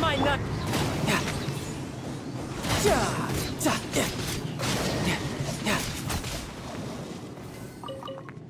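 Sword blows and magic blasts clash in a loud fight.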